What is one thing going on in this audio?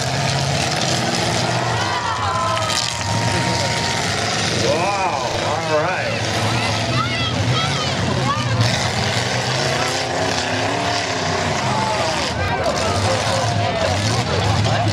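Truck engines roar and rev loudly outdoors.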